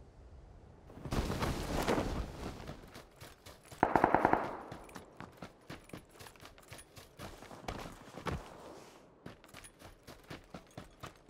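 Footsteps run quickly over grass and ground.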